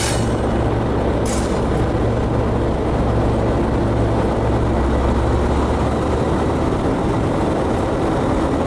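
Train wheels roll along steel rails.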